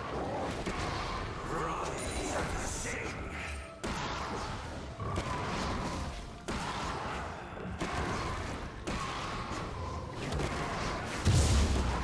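Video game combat sound effects clash and zap.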